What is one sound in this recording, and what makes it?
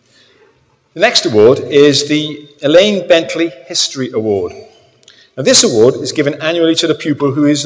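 A man speaks calmly through a microphone in a large echoing hall, reading out.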